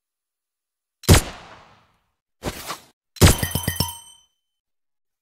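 Game gunfire and impact effects burst out.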